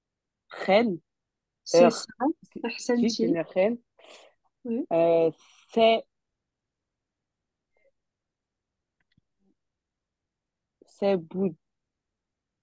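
A young woman speaks slowly and clearly into a microphone, pronouncing words one at a time.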